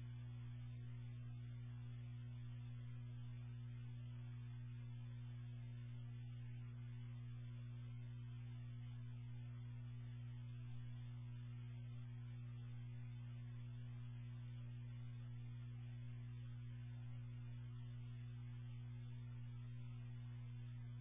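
Radio static hisses steadily with a low hum from a loudspeaker.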